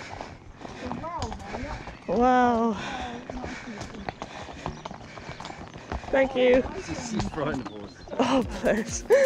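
A woman talks and calls out nearby, outdoors.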